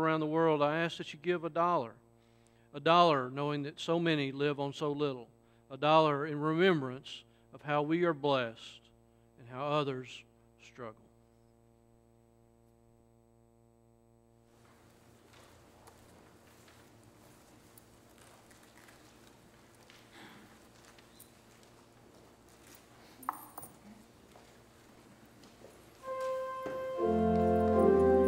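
An organ plays sustained chords.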